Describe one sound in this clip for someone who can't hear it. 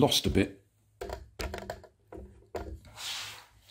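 A small plastic toy car rattles and clatters across a wooden floor.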